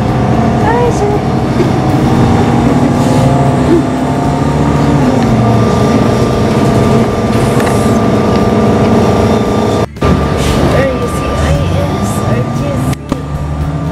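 A bus rattles and creaks as it drives.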